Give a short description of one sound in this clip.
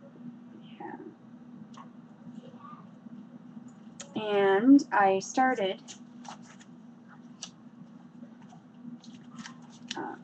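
Plastic wrapping crinkles as a woman handles a package.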